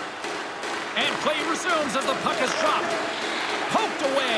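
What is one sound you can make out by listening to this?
A crowd whistles and cheers loudly.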